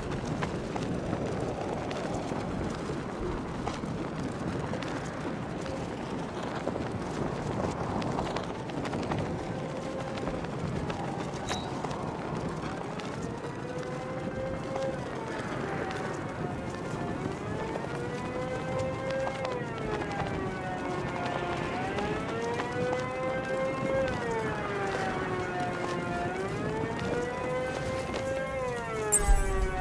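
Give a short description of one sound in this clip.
Wind rushes steadily past during a fast glide.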